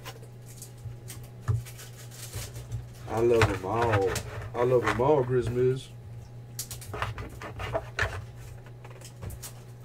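A cardboard box rustles and scrapes as hands open it.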